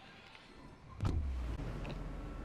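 Wind rushes loudly past, as in a fast fall through the air.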